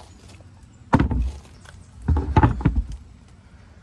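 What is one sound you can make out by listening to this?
A plastic filter housing knocks and thumps as it is handled.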